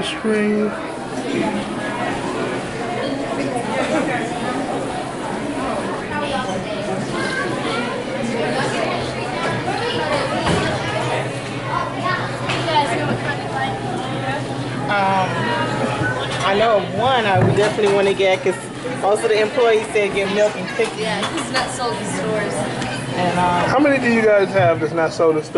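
A refrigerated display case hums steadily.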